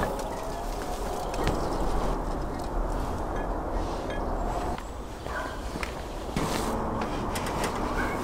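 A sheet of fabric rustles as it is lifted.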